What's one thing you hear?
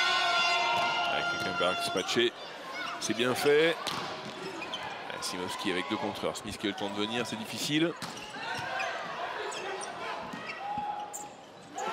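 A volleyball is struck hard, with sharp smacks echoing in a large hall.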